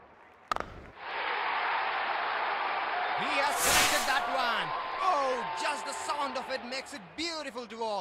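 A large crowd cheers and roars loudly.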